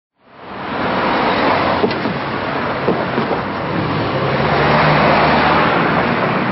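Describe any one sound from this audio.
Cars drive past close by on a road.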